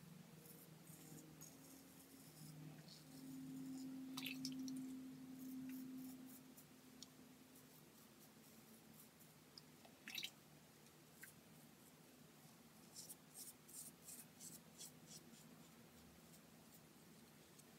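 A razor scrapes softly across stubble.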